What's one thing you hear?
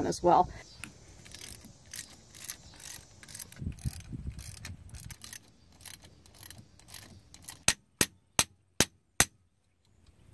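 A ratchet wrench clicks quickly as it turns a bolt.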